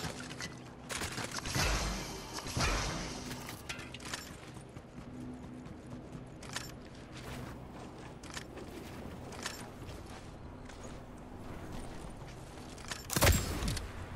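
Footsteps patter quickly in a game.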